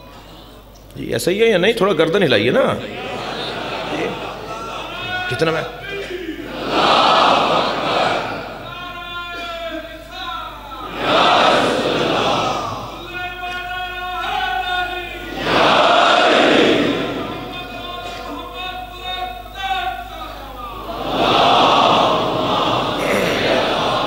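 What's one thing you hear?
A man speaks with animation through a microphone in a reverberant hall.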